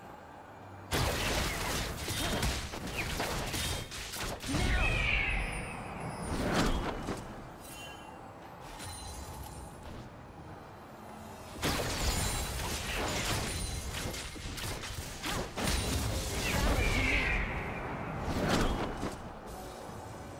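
Spell effects whoosh and crash in loud bursts during a fight.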